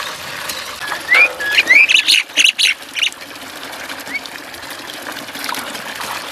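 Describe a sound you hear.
A small bird splashes in water.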